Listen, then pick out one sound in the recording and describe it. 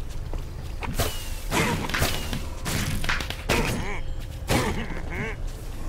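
Fireworks burst and pop in quick succession in a video game.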